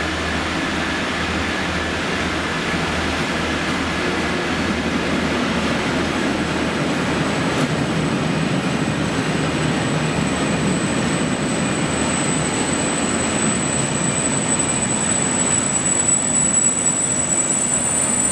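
Freight wagon wheels rumble and clatter over the rails.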